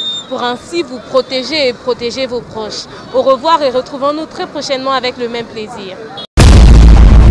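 A young woman speaks into a close microphone with animation.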